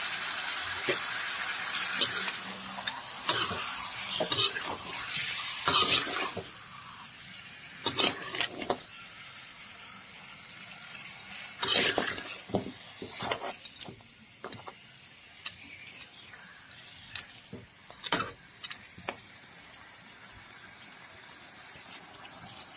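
Meat sizzles and crackles in hot oil.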